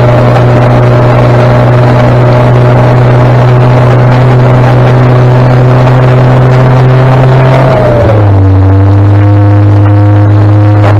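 A vehicle engine drones loudly and steadily close by, then drops in pitch as it changes gear.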